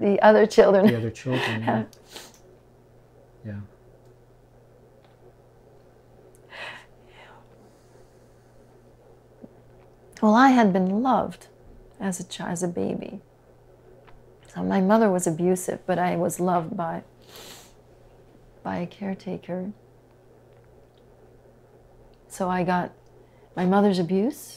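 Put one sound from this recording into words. A woman speaks calmly and thoughtfully nearby, with pauses.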